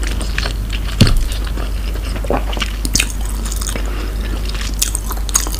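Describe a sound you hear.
Chopsticks click against a plastic container close to a microphone.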